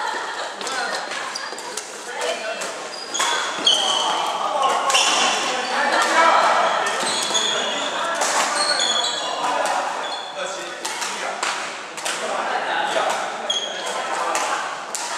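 Men talk and call out to each other across an echoing hall.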